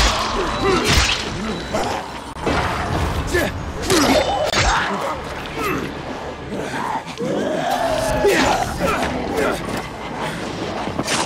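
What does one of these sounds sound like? A blunt weapon thuds hard into a body, again and again.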